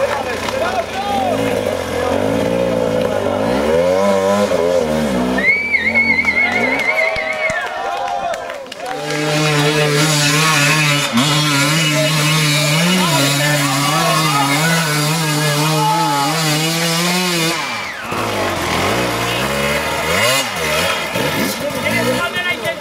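A motorcycle engine revs hard and roars.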